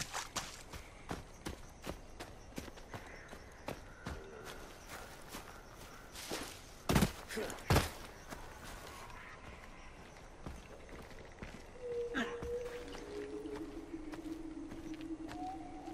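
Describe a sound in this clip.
Footsteps crunch over dry ground and grass.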